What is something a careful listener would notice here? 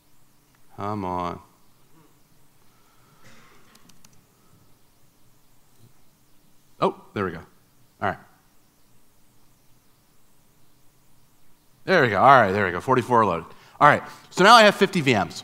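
A man speaks through a microphone in a large hall, in short bursts with pauses.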